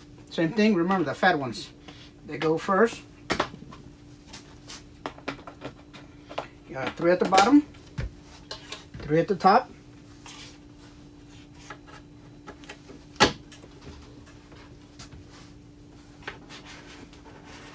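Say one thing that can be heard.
Small plastic plugs click into place in a metal panel.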